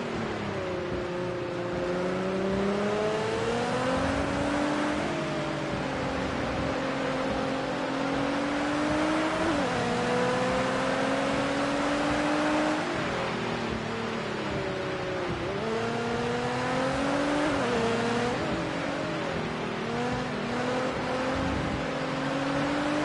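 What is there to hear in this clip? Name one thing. A racing car engine roars, climbing in pitch and dropping sharply at each gear change.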